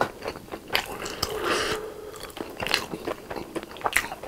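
A wooden skewer scrapes against food in a bowl.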